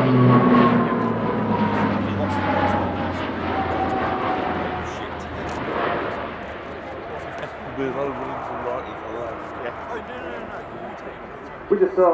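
A propeller plane roars overhead, its droning engines slowly fading into the distance.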